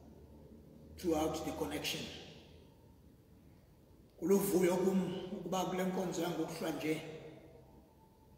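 A man speaks slowly and solemnly into a microphone in an echoing hall.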